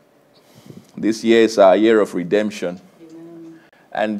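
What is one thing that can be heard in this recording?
A man speaks calmly and clearly through a microphone.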